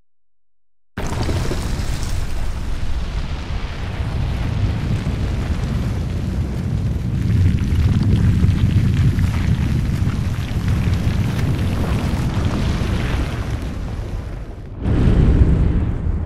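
A huge stone structure rumbles deeply as it rises out of the ground.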